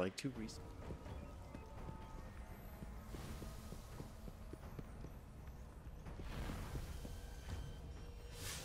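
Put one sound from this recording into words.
Footsteps fall on stone at a steady walking pace.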